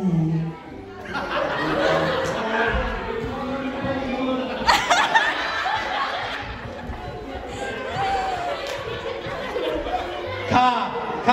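A small crowd laughs and cheers.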